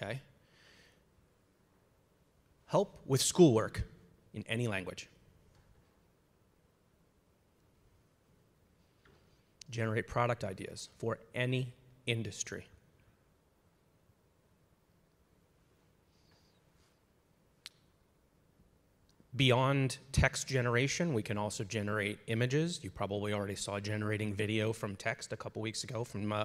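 A man speaks through a microphone in a large hall, with pauses between phrases.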